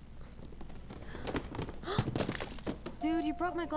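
A glass object falls and shatters.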